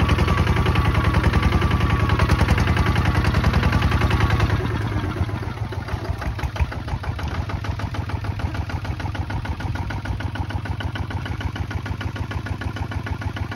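A diesel engine chugs loudly and steadily close by.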